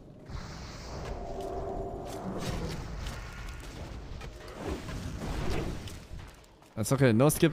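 Video game combat sound effects clash and ring out.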